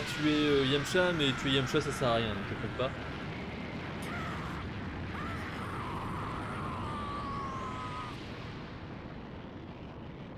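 An explosion roars with a low rumbling blast.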